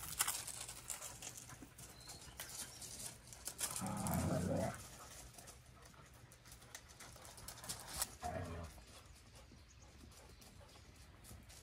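Dogs' paws crunch on gravel.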